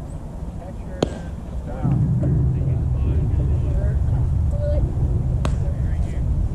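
A baseball smacks into a catcher's mitt in the distance.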